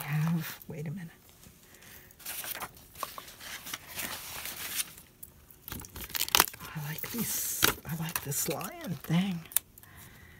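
Paper rustles and scrapes under hands.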